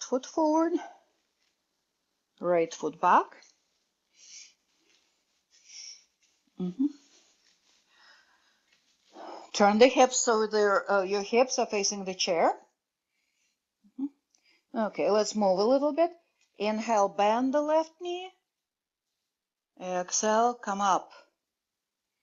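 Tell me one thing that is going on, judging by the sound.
A middle-aged woman speaks calmly and clearly, as if giving instructions, in bursts with pauses.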